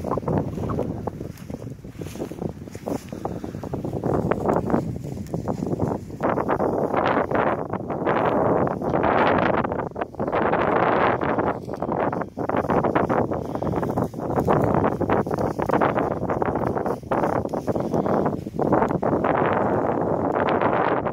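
Dry grass rustles and swishes in the wind.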